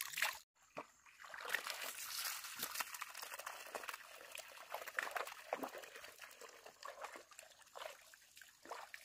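Water pours from a pipe into a bucket.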